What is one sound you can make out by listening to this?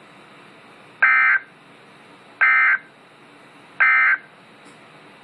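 A radio beeps several times in short bursts.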